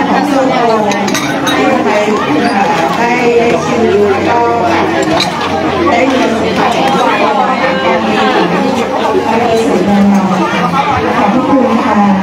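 Other women chatter nearby outdoors.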